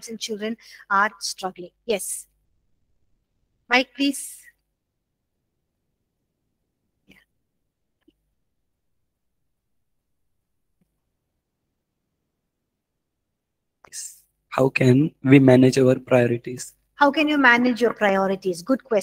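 A woman speaks calmly and closely into a microphone, with long pauses.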